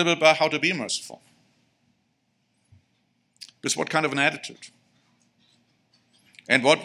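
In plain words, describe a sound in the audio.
A man speaks calmly into a microphone in short phrases, with pauses.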